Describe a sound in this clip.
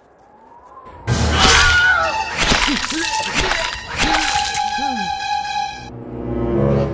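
A young man screams loudly close by.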